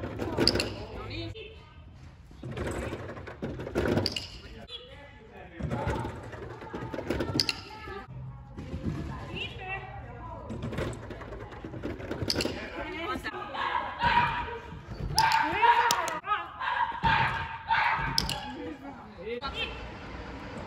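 A woman calls out excitedly to a dog in a large echoing hall.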